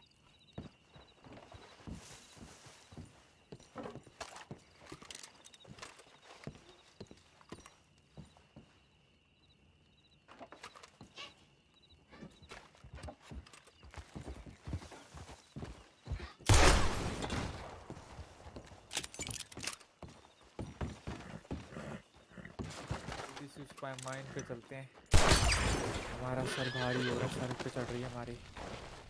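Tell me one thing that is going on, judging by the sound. Boots thud on wooden floorboards.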